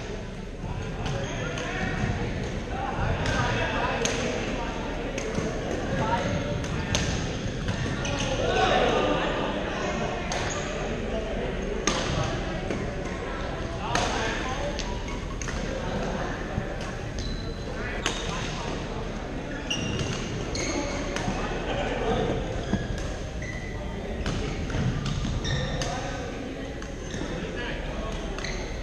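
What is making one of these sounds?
Shuttlecocks are struck with rackets in sharp pops.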